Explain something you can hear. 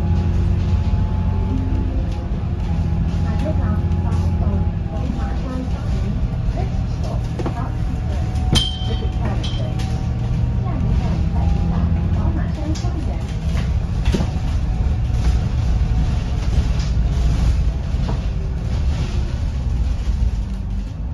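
A bus body rattles and creaks over bumps.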